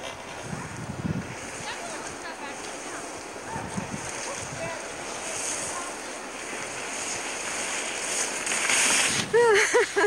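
Skis hiss and scrape over snow as a skier glides closer.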